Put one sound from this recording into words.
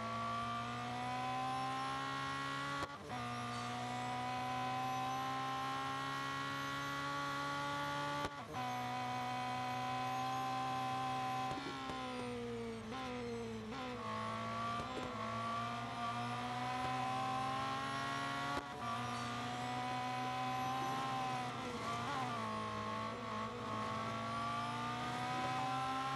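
A racing car engine roars loudly at high revs.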